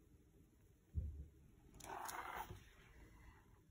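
A stiff book page is turned over.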